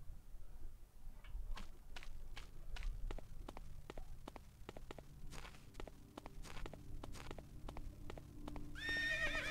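Footsteps tap along a path at a steady pace.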